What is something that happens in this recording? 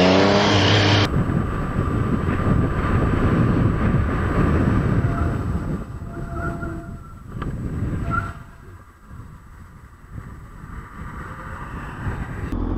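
Wind rushes past a motorcycle rider.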